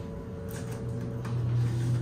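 A finger presses an elevator button with a click.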